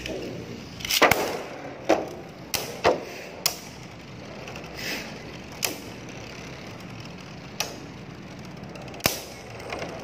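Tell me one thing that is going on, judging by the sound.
Spinning tops clash with sharp clacks.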